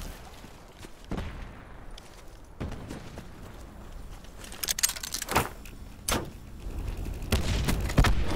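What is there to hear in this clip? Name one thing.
Footsteps run across dry ground.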